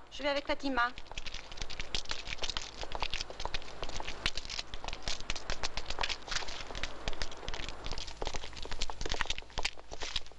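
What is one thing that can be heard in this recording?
Footsteps shuffle and tap on a hard floor.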